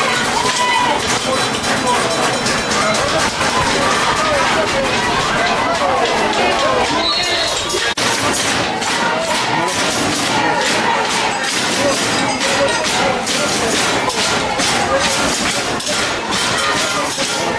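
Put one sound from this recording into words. Men shout close by from a sideline outdoors.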